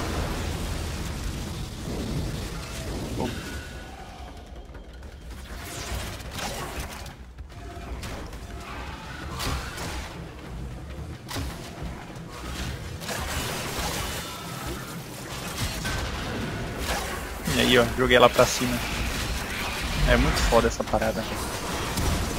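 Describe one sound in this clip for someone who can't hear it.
Weapons fire and energy blasts crackle in quick bursts.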